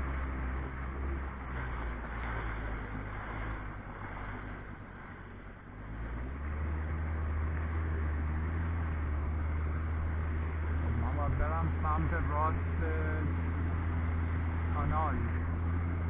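A personal watercraft engine hums steadily close by.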